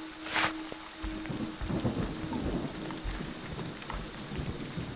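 Heavy footsteps crunch slowly over dry leaves and forest ground.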